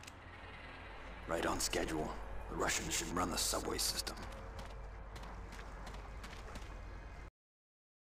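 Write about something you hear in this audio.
Footsteps tread on pavement.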